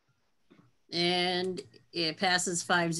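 A middle-aged woman speaks with animation over an online call.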